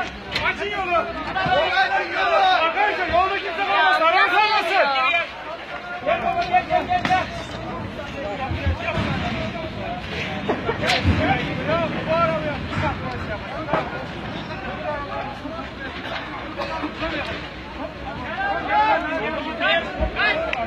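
Men shout excitedly nearby.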